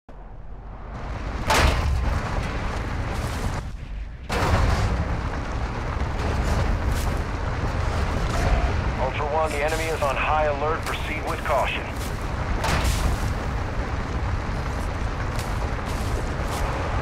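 A truck engine roars as the truck drives fast over rough dirt ground.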